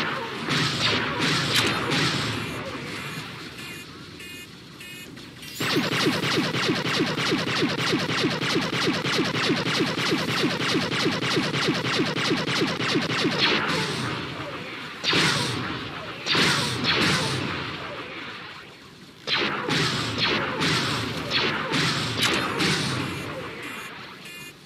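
Rapid laser gunfire rattles in quick bursts.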